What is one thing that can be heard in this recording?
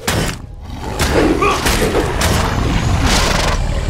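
A large beast roars.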